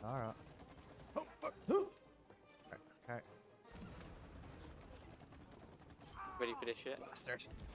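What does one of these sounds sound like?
Playful game sound effects bloop and chirp in quick bursts.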